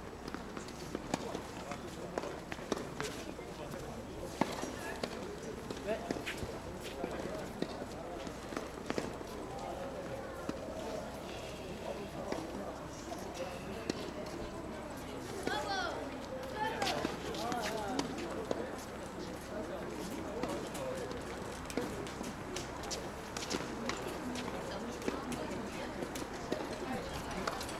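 Tennis rackets strike a ball with sharp pops, outdoors.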